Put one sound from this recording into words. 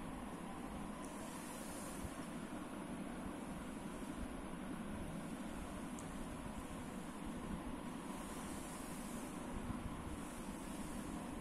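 Paper pages of a book rustle as they are turned.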